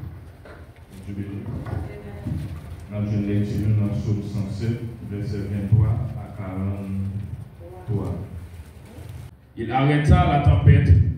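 A group of men and women read aloud together.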